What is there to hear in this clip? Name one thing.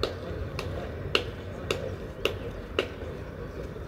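A tennis ball bounces several times on a clay court.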